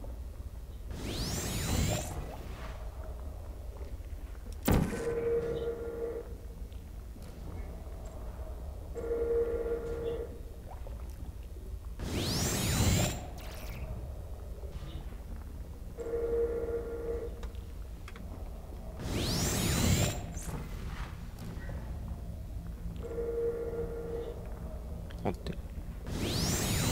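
A ray gun fires with a sharp, zapping whoosh.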